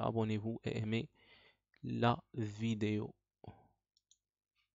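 A man speaks calmly and closely into a headset microphone.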